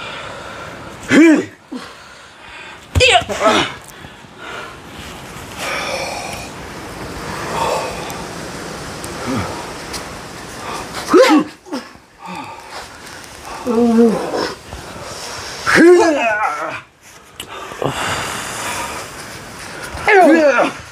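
A man shrieks loudly and wildly, again and again.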